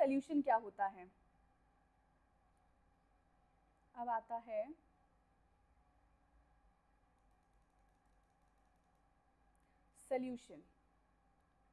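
A woman speaks calmly and briefly into a close microphone, with long pauses.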